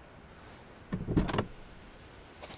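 A car door opens with a clunk.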